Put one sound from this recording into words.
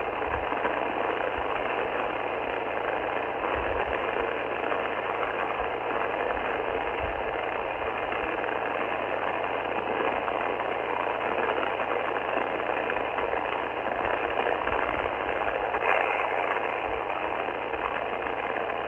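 Static hisses steadily from a radio receiver's loudspeaker.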